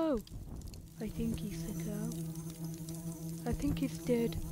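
A fire crackles and hisses.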